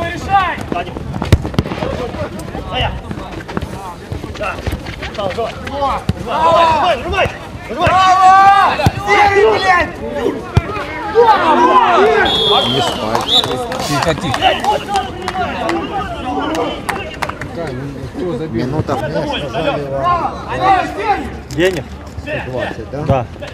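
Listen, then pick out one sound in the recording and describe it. A football thumps as it is kicked.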